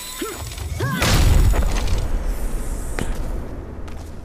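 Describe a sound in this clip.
A deep whoosh roars as a character launches upward.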